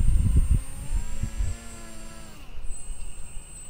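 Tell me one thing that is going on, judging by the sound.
A small electric boat motor whirs and rises in pitch.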